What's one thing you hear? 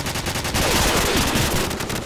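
Rapid gunfire rattles close by.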